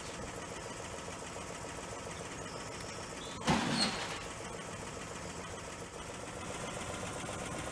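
A bus engine runs with a steady low rumble.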